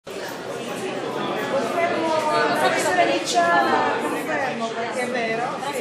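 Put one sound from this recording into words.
Young women talk close by, speaking with animation.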